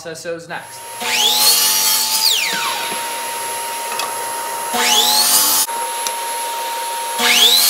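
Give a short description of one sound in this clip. A power saw whirs up to speed and whines steadily.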